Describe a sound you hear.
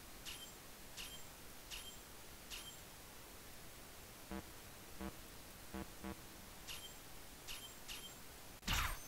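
Short electronic beeps tick as menu choices change.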